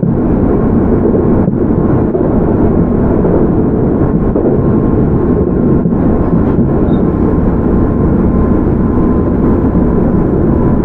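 A train rumbles steadily along the tracks close by.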